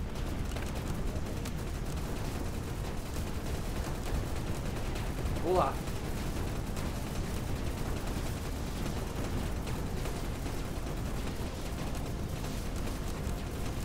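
Explosions rumble steadily.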